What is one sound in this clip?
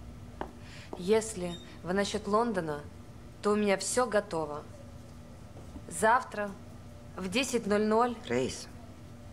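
A second woman speaks calmly nearby.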